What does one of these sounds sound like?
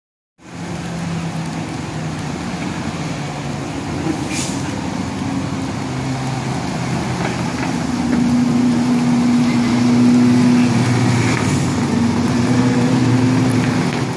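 Racing car engines rev up and down as the cars change gear.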